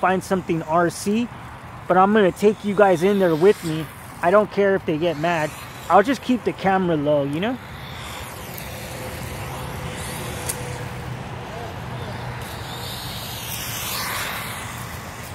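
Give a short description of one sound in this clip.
A small remote-control car's electric motor whirs.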